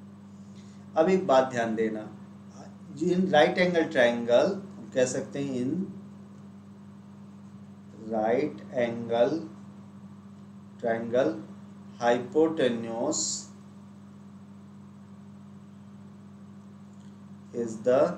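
A young man speaks calmly into a close microphone, explaining.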